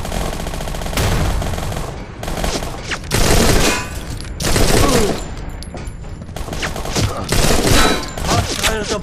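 Rifle shots ring out in bursts.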